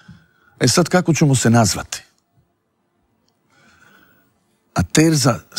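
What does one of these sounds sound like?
A middle-aged man speaks with animation into a close microphone, with pauses.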